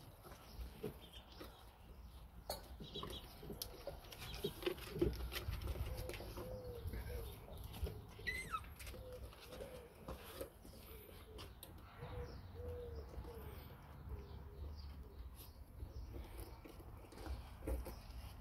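Puppies chew and crunch food close by.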